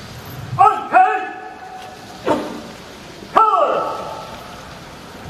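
A man shouts commands through a loudspeaker.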